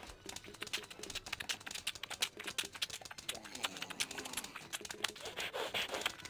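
Cartoon plants rapidly fire peas with quick popping sounds.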